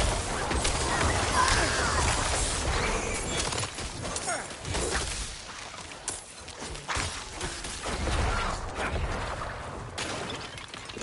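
Magic blasts and weapon blows crash loudly in a fierce fight.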